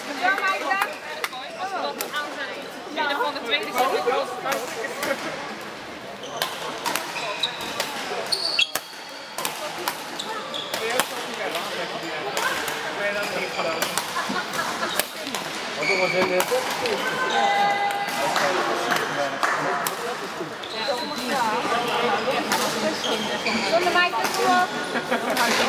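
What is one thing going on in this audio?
Players' shoes squeak on the hall floor.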